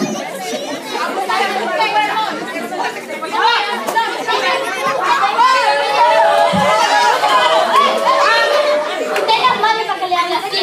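Children shout and laugh with excitement.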